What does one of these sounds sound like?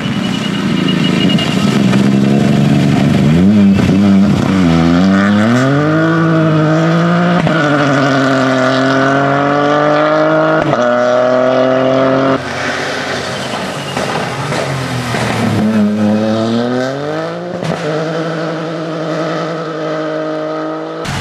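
Tyres splash and spray through water on a wet road.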